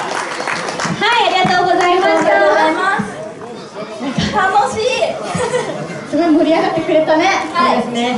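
Young women speak with animation through microphones.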